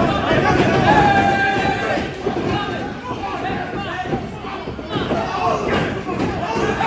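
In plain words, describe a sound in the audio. A crowd of men shouts and yells excitedly close by.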